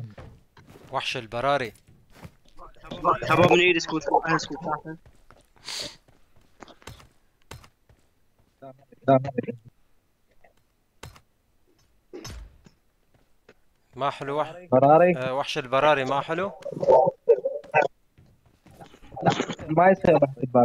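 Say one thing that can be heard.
A young man talks with animation into a microphone, in bursts with pauses.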